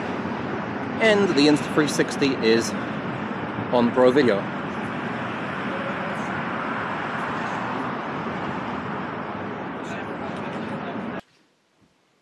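Steady wind blows outdoors.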